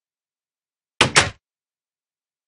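A wooden door creaks open with a knock.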